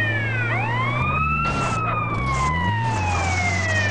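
A vehicle crashes and scrapes onto its side.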